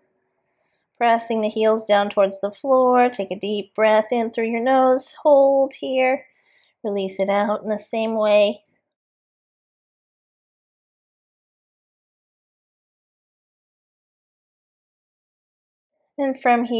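A young woman speaks calmly and clearly into a close microphone.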